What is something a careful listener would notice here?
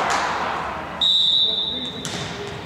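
A whistle blows briefly.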